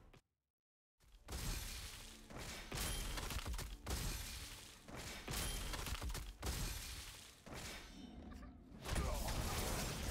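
Heavy booming impacts ring out.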